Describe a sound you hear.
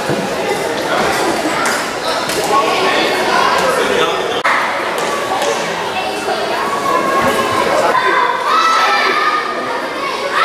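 Children shout across the court.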